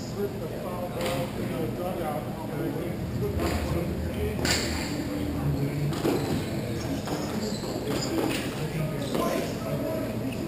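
Hockey sticks clack sharply against a ball on a hard floor in a large echoing hall.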